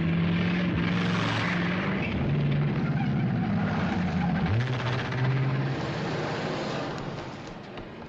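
A car engine rumbles as a car drives past and pulls away.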